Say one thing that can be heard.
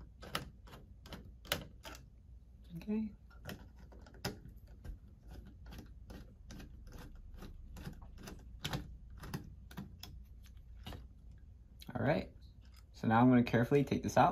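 A screwdriver clicks and scrapes against a metal fitting.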